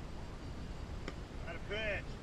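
A bat cracks sharply against a ball.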